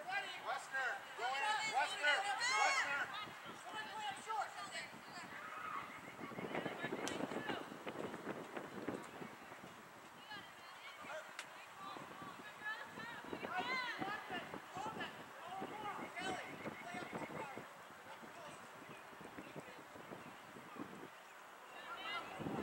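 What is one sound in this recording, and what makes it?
Young women shout and call out to each other across an open field at a distance.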